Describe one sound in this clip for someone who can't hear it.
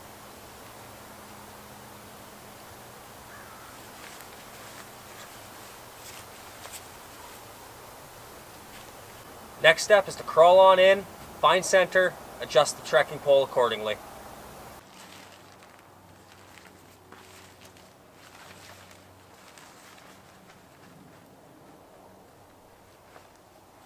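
Heavy fabric rustles as it is handled and pulled up.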